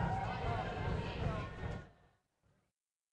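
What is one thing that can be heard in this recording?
A crowd of people chatters far off in a large echoing hall.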